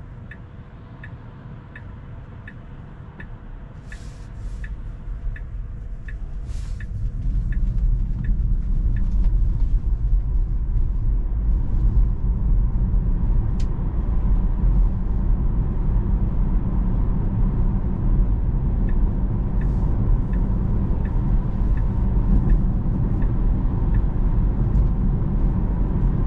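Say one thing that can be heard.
Tyres rumble steadily on the road from inside a moving car, growing louder as it speeds up.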